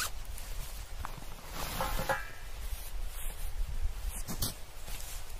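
Nylon fabric of a backpack rustles and crinkles.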